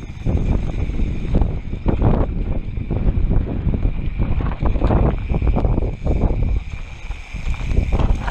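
Bike tyres rumble and crunch over a rough dirt trail.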